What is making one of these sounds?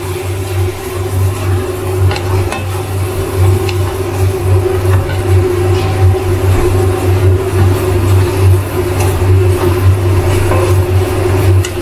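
A spatula scrapes and clicks against a metal pan.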